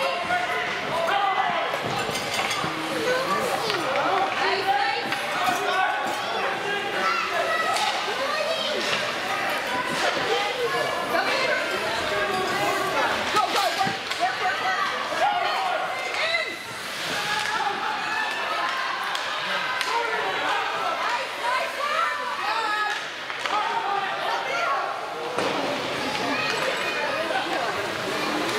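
Spectators chatter nearby in the stands.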